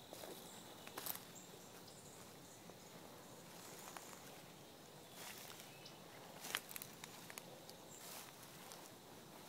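Footsteps crunch through dry leaves.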